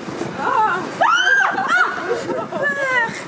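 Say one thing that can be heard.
A young woman shrieks in fright.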